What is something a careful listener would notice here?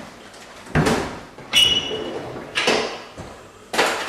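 A drawer slides open.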